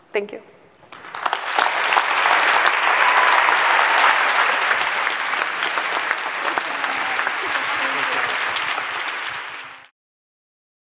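A large audience applauds loudly.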